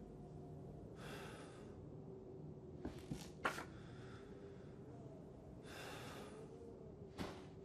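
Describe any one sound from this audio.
Paper rustles as a photograph is handled and turned over.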